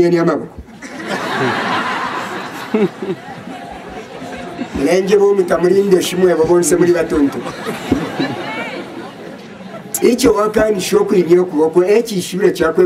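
A large crowd chatters and calls out outdoors.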